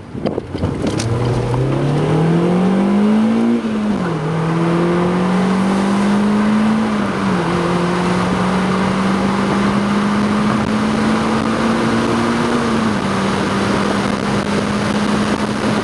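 A car engine revs hard as it accelerates through the gears, rising in pitch and dropping at each gear change.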